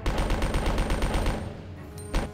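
Gunshots fire rapidly in a steady rhythm.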